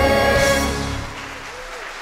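A choir and band hold a final loud chord in a large echoing hall.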